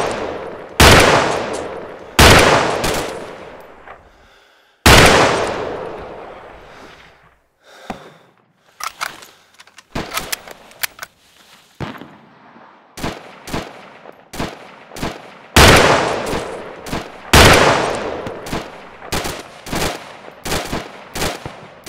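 Heavy gunshots boom and echo across open ground.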